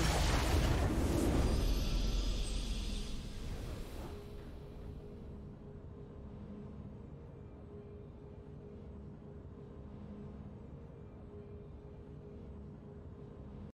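A triumphant game fanfare plays softly.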